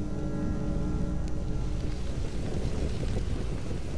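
A small fire crackles nearby.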